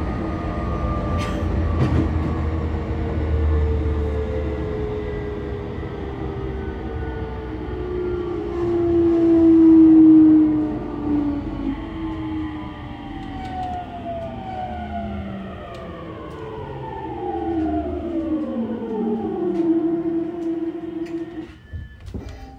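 A train rumbles along the tracks from inside a carriage.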